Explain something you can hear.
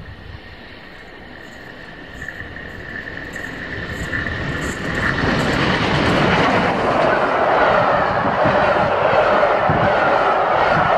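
A train approaches and rumbles past close by, growing louder.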